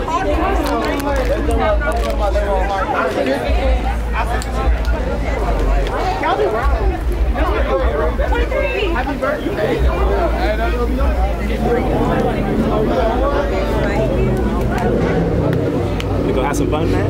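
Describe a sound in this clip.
A crowd of young men and women chatters and talks loudly outdoors.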